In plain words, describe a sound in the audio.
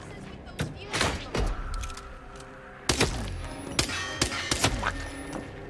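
A pistol fires several sharp shots that echo.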